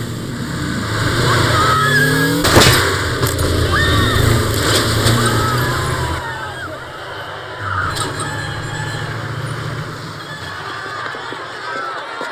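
A crowd of people shouts and clamours outdoors.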